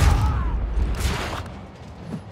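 Heavy punches thud in a brawl.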